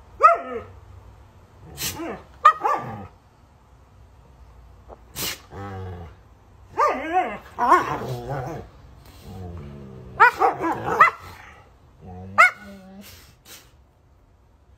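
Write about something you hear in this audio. Two dogs growl and snarl at each other while playing.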